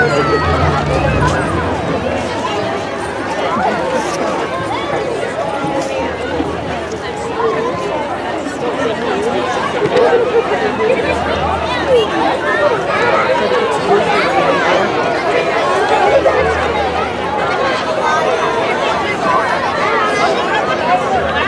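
A crowd of adults and children chatters loudly outdoors.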